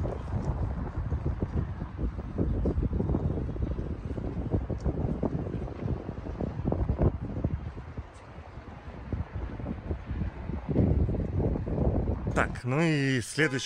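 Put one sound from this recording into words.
Wind blows into a microphone outdoors.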